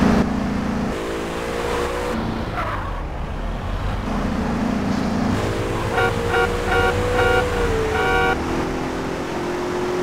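A car engine roars as it accelerates.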